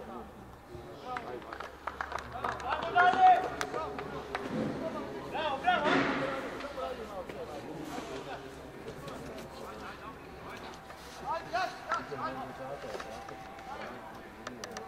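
Young men shout to each other across an open pitch, heard from a distance.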